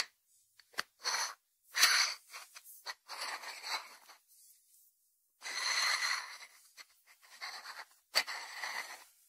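Hands rub and scrape against a ceramic dish.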